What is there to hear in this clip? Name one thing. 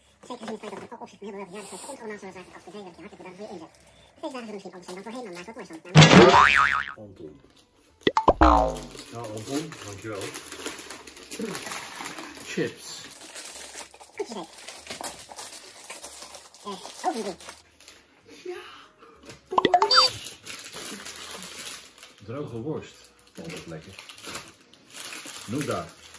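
Plastic snack packets crinkle and rustle.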